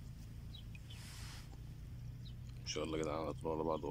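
A small animal splashes softly as it swims in still water.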